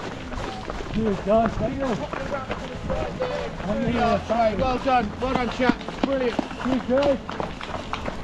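A man cheers and calls out loudly nearby outdoors.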